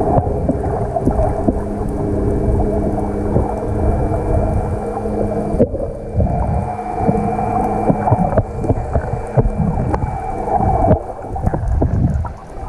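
Water rushes and sloshes in a low, muffled rumble underwater.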